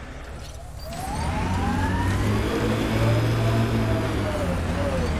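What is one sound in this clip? A vehicle engine hums and revs steadily.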